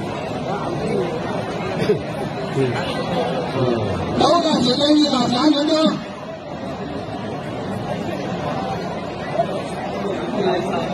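A large outdoor crowd chatters and shouts throughout.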